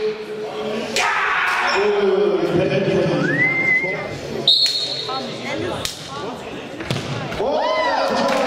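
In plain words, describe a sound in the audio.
A football is kicked hard in a large echoing hall.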